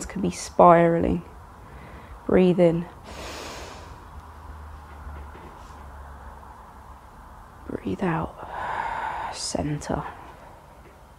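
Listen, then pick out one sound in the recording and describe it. A woman gives calm instructions nearby, in short phrases.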